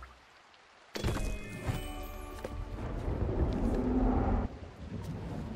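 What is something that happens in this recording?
A magical chime rings out with a whoosh.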